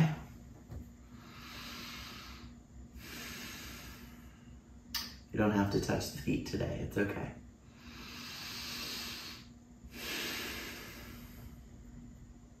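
A woman breathes slowly and deeply.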